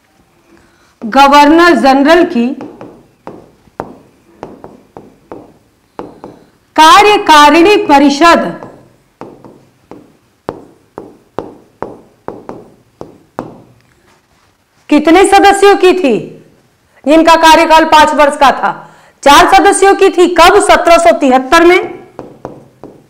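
A woman speaks clearly and with animation, close to a microphone, in bursts with pauses.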